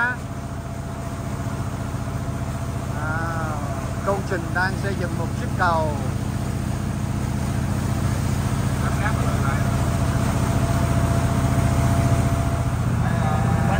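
A boat engine drones steadily and low.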